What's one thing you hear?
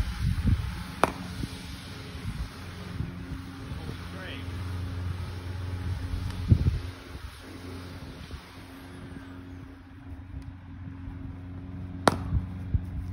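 A cricket bat sharply cracks against a ball.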